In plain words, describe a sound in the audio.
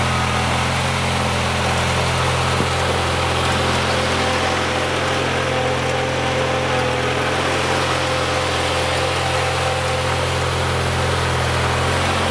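A small tractor engine runs loudly and steadily close by.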